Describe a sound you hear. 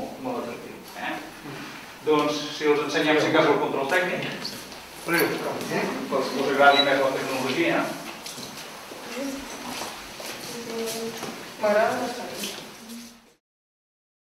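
An elderly man speaks calmly to a small group nearby.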